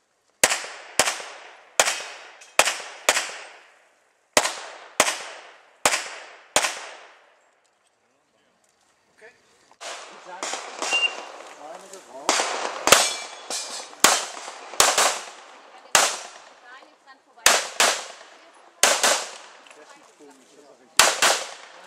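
Pistol shots crack in rapid strings outdoors, each echoing off the range.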